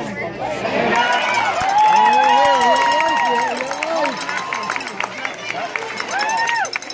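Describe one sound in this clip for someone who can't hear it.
Several men shout and cheer loudly nearby.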